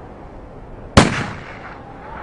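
A pistol fires a single shot.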